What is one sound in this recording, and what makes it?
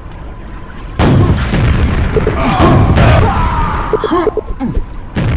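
Rockets explode with loud, heavy booms nearby.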